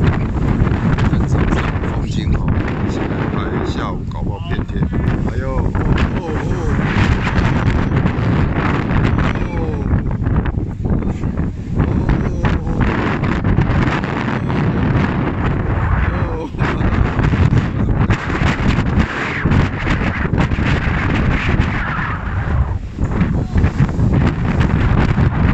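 Strong wind buffets loudly outdoors.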